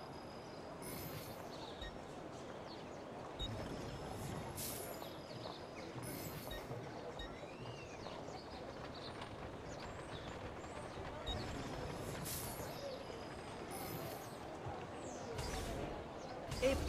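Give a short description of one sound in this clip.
Short electronic whooshes and chimes sound.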